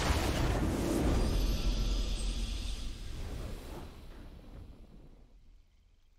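A triumphant fanfare swells and then slowly fades.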